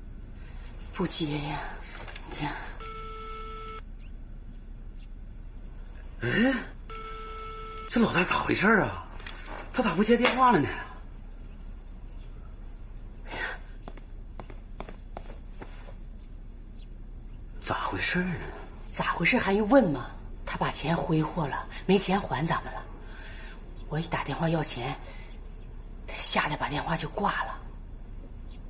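A middle-aged woman speaks agitatedly, close by.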